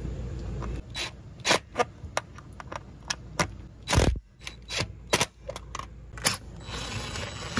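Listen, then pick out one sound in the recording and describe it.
Metal clicks and taps as a screw is fitted by hand.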